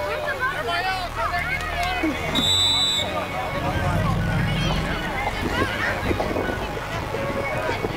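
A crowd of children and adults chatter and call out nearby outdoors.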